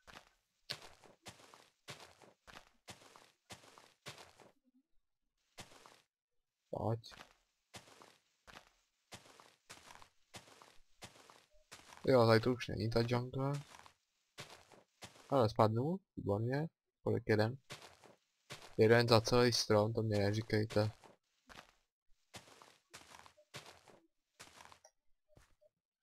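A video game's leaf-breaking sound effect crunches in a quick, even rhythm.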